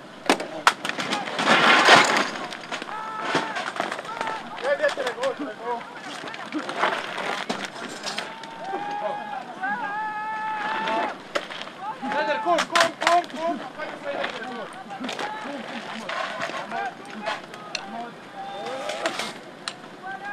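A launcher on an armoured vehicle fires with sharp loud bangs.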